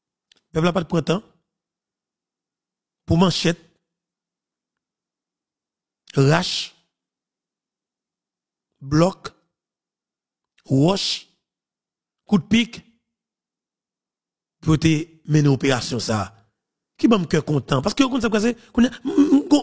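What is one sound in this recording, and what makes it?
A man speaks calmly into a close microphone, in short phrases broken by pauses.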